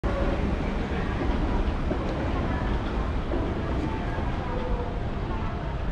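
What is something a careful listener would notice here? An elevated train rumbles past overhead.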